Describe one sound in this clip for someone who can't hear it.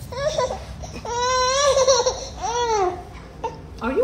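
A little girl squeals and babbles in a high voice.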